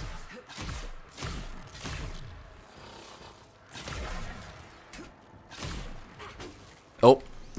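Heavy footsteps thud on hard ground.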